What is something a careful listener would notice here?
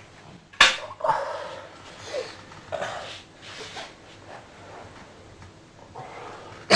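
A young man groans and gasps close by.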